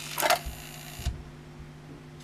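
A disc tray clunks shut.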